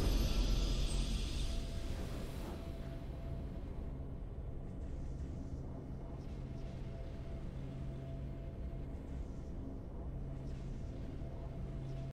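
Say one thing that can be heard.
A triumphant game fanfare swells and then settles into a low, steady hum of music.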